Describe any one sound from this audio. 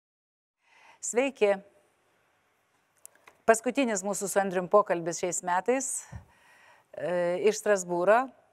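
A middle-aged woman speaks calmly into a close microphone.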